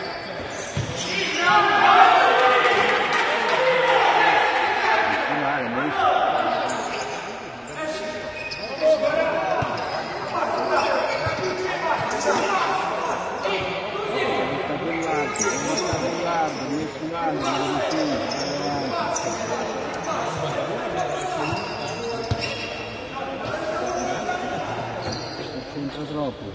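Young men in a crowd talk and shout nearby in a large echoing hall.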